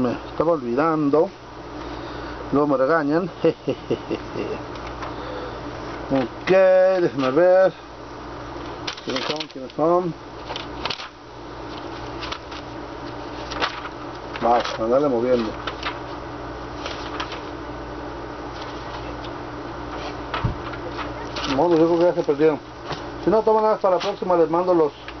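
An accordion plays short bursts of notes, close by, with pauses in between.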